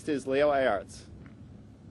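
A man speaks calmly into a microphone outdoors.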